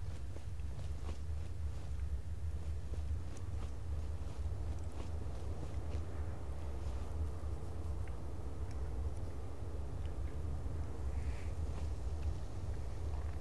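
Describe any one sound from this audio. Footsteps crunch steadily over rocky ground.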